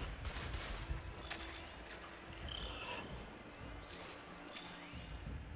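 Soft electronic chimes ring as menus pop up.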